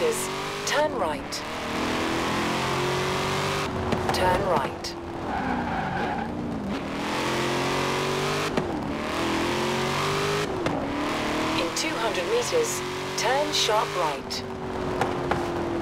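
A sports car engine roars steadily, its pitch climbing and dropping as gears shift.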